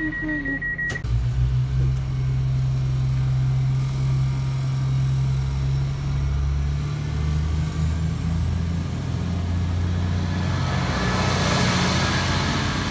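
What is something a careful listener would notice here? A stationary train's motor hums low and steadily nearby.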